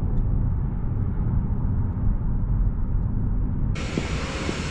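A car hums steadily as it drives along a road.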